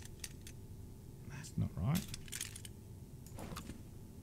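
A combination lock dial clicks as it turns.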